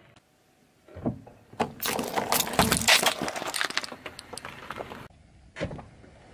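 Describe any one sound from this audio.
A car tyre crushes plastic tubs with loud cracking and crunching.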